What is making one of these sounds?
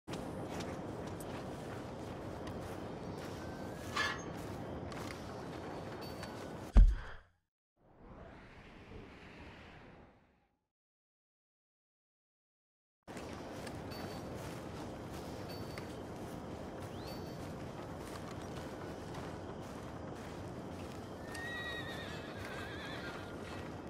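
Footsteps tread on soft grass outdoors.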